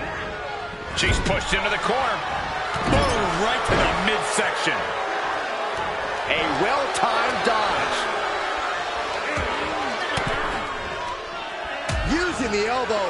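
Heavy thuds of bodies hitting each other and the mat ring out.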